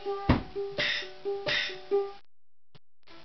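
A ukulele is plucked in short bright notes.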